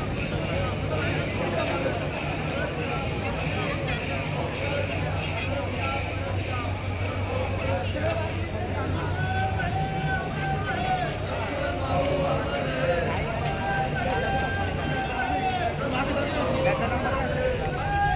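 A large outdoor crowd murmurs and chatters loudly.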